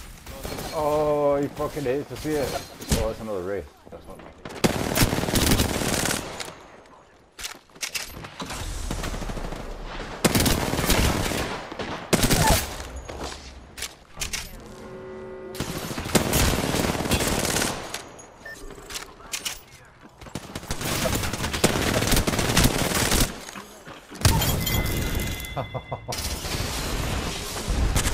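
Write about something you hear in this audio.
Guns fire in rapid, loud bursts.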